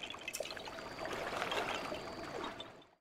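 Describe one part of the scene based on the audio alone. Water splashes as a swimmer paddles through it.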